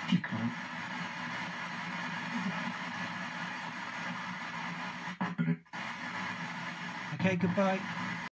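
Brief garbled voice fragments break through the radio static.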